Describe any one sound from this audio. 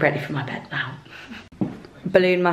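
A young woman talks softly close by.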